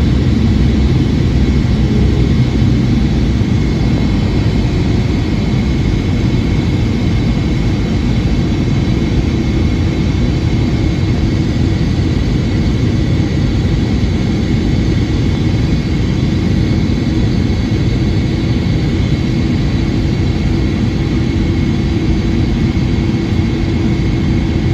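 A jet engine roars steadily, heard from inside the cabin.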